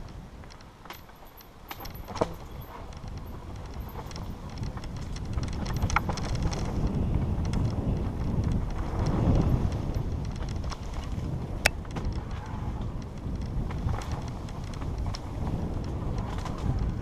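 A bicycle rattles and clatters over bumps.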